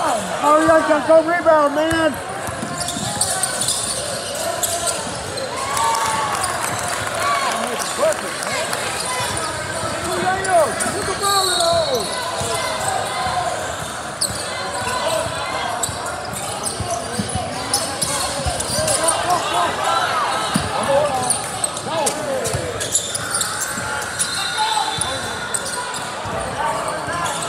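Spectators shout and call out in a large echoing gym.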